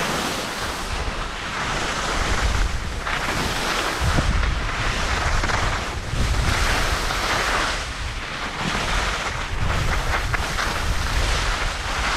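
Wind rumbles across the slope outdoors.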